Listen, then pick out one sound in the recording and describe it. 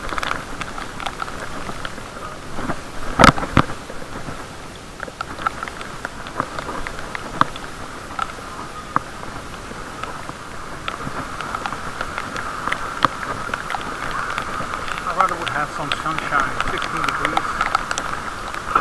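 Rain patters steadily on wet paving outdoors.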